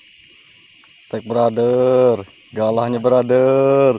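A fishing reel whirs as it is wound.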